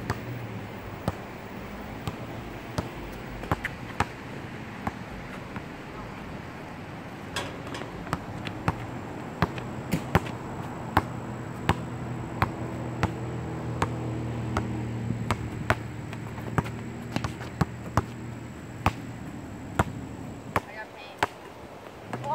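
A basketball bounces sharply on asphalt, over and over.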